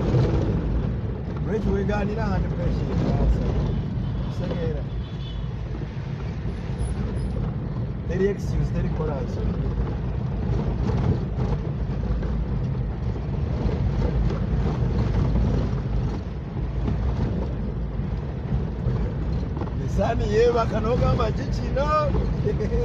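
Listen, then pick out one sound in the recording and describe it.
A car engine rumbles steadily while driving over a rough dirt road.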